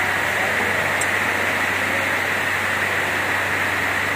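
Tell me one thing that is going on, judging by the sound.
Plastic bottles rattle along a chain conveyor.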